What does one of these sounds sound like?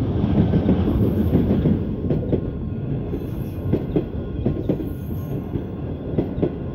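A passenger train rumbles past close by.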